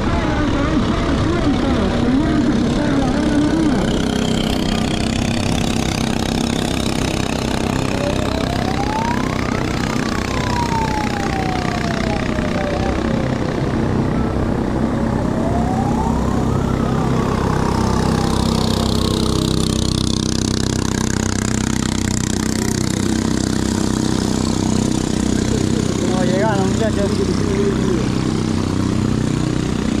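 Water splashes and rushes against a moving boat.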